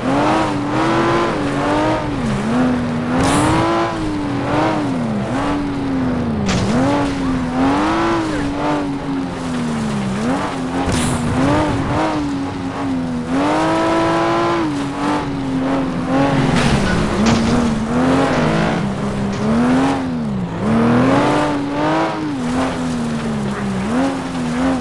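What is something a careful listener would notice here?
Tyres skid and slide on dirt.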